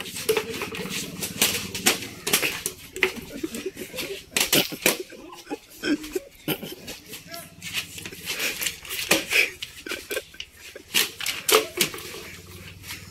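Sharp claps and slaps ring out repeatedly.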